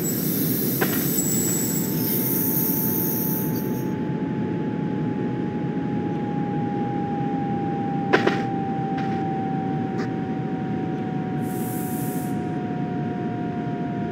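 A steady electric whine from the train's motor slowly drops in pitch.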